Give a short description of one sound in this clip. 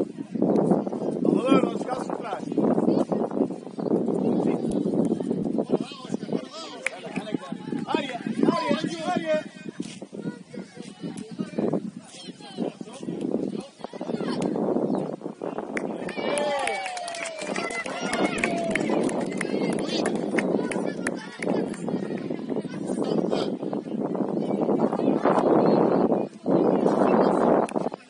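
Young players shout and call out across an open outdoor pitch.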